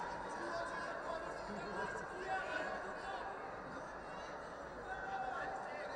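A large crowd murmurs and chatters throughout a big echoing arena.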